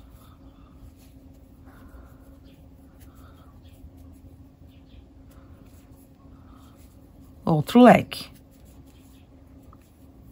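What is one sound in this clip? A crochet hook softly rubs and clicks against cotton yarn.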